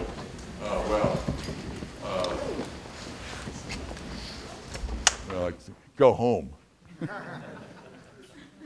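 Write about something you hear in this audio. An elderly man speaks into a microphone in a large echoing hall, pausing now and then.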